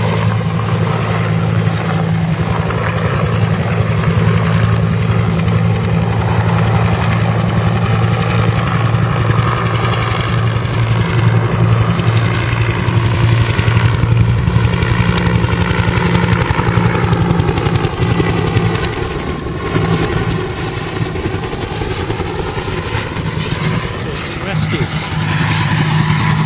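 A helicopter's rotor thumps steadily overhead as it flies past.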